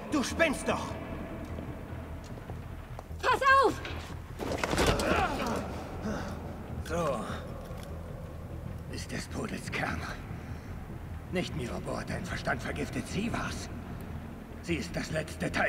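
A man speaks tensely in a low voice.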